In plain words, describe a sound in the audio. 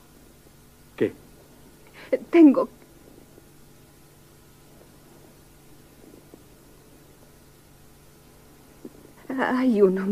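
A young woman speaks in a tearful, upset voice close by.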